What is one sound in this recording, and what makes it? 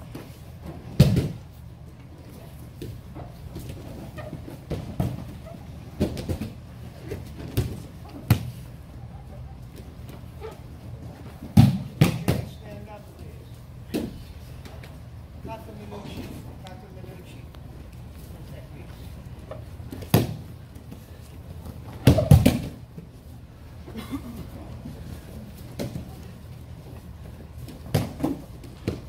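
Bodies thud and slap onto a padded mat.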